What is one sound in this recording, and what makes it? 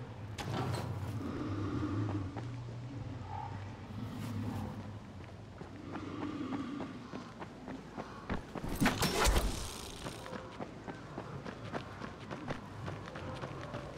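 Footsteps crunch on gravel and grass.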